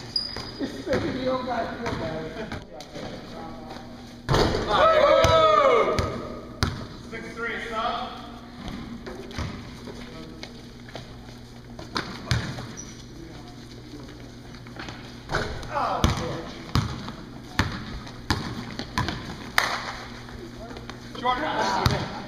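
A basketball bounces on a wooden gym floor.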